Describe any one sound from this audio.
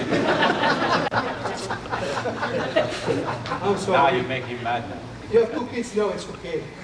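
A man speaks calmly to a group.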